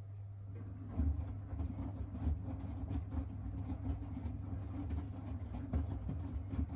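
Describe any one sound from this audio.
Laundry tumbles and thumps inside a washing machine drum.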